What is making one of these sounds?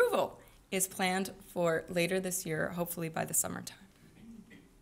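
A woman speaks calmly into a microphone in a room.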